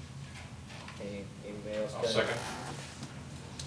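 A man speaks briefly in a quiet room, heard from across the room.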